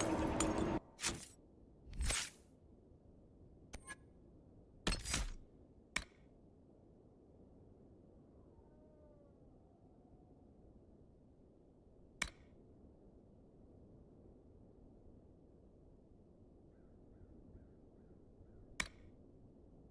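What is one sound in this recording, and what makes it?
Menu selections click and chime sharply, now and then.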